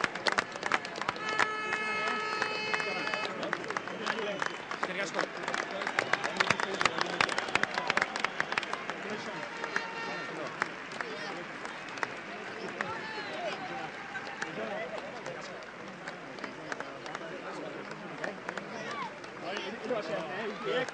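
A crowd of men chatters and calls out loudly outdoors.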